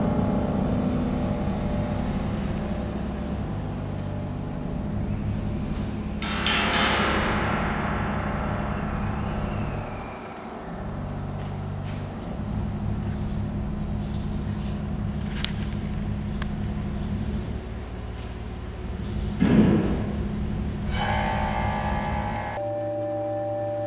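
A grand piano plays along.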